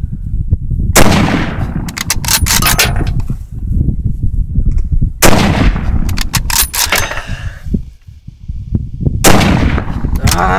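A rifle fires loud shots that echo across open ground.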